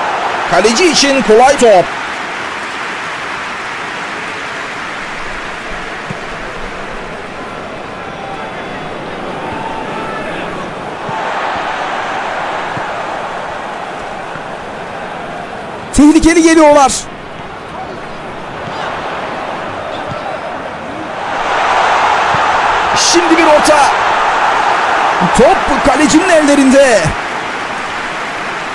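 A large stadium crowd roars steadily, swelling louder toward the end.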